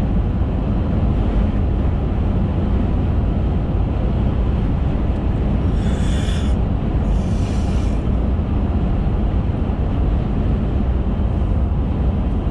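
A car engine hums steadily inside a moving car.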